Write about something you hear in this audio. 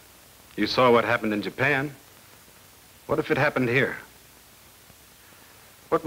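A man speaks calmly and clearly close by, in short phrases with pauses.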